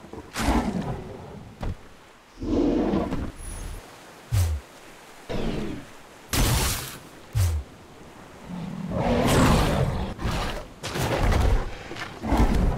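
Heavy blows thud and crash.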